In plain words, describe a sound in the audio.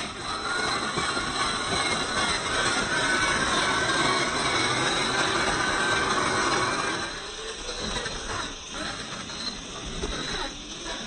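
Plastic tyres crunch over loose gravel and rock.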